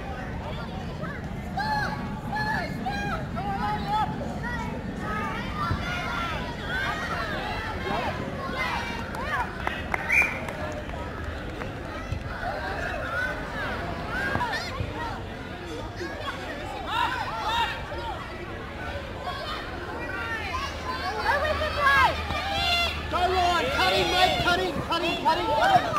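Children shout and call out to each other across an open field outdoors.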